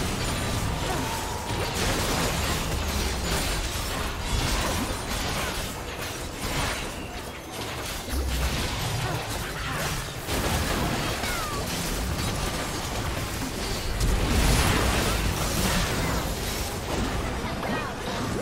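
Game spells and attacks clash and explode rapidly.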